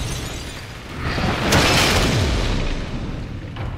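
A heavy crash rumbles and roars.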